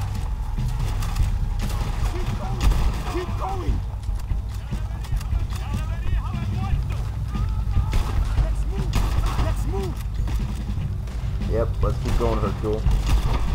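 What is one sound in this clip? Rifle shots crack repeatedly, with echoes.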